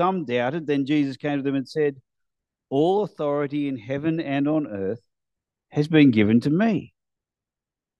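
A man reads aloud calmly through a microphone.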